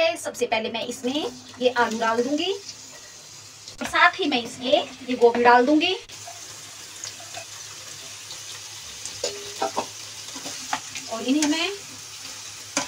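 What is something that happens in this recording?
Hot oil sizzles in a pan.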